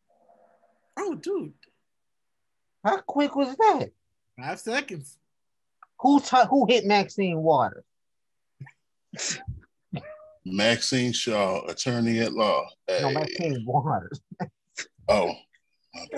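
Young adults talk with animation over an online call.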